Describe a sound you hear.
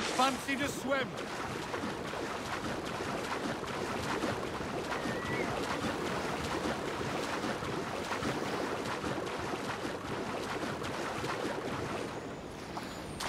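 Water sloshes and splashes steadily as someone swims.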